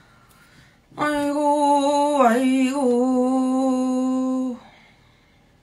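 A young woman sings a long, steady note close by.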